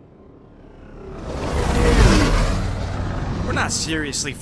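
A spaceship roars past with a rushing whoosh.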